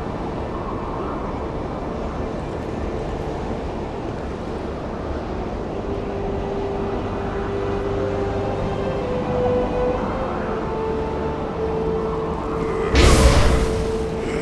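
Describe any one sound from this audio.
Wind howls steadily.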